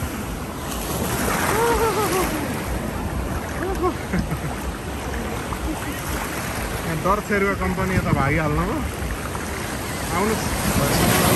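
Small waves wash and splash on the shore.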